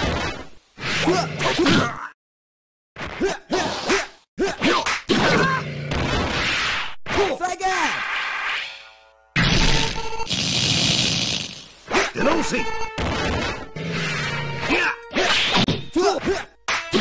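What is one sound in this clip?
Blows land with heavy thuds.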